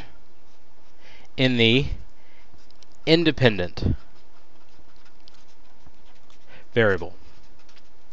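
A marker squeaks and scratches on paper.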